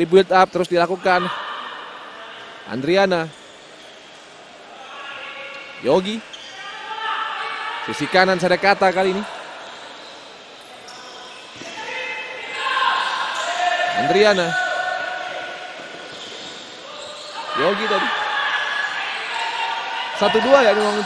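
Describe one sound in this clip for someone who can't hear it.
A crowd cheers and murmurs in a large echoing hall.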